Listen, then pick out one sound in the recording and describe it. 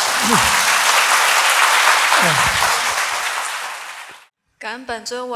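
A large crowd applauds loudly in a big echoing hall, then the applause fades.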